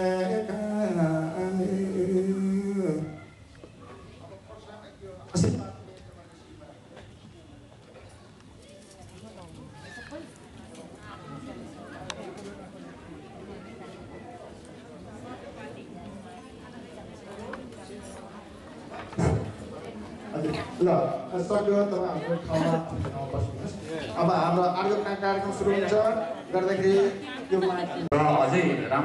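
A man sings into a microphone through loudspeakers in a large hall.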